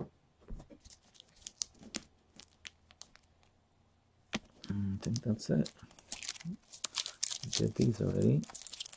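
Plastic card sleeves click and rustle as they are handled.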